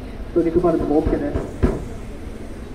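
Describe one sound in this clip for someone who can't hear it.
A drum thumps.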